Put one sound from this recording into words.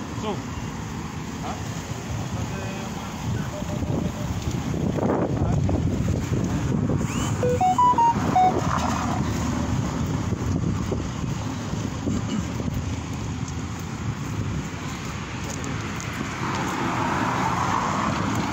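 Wind buffets a phone microphone outdoors.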